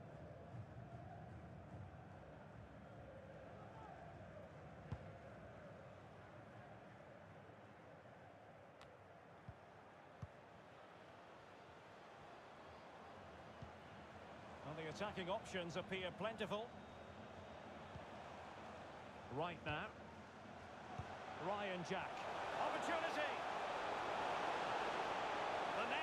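A stadium crowd murmurs and cheers steadily, rising in the last seconds.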